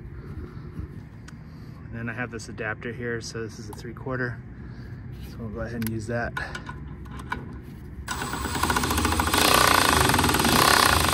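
Metal tools clink and tap against metal.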